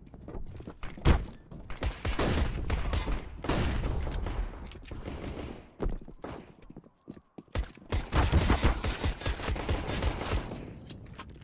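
A suppressed pistol fires rapid shots.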